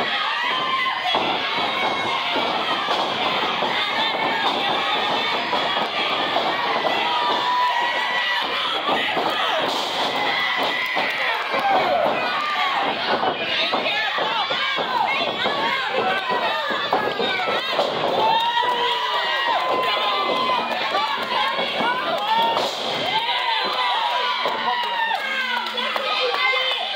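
Bodies thud onto a mat.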